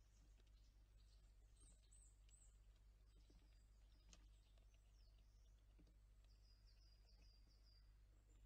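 A squirrel nibbles seeds close by with soft crunching.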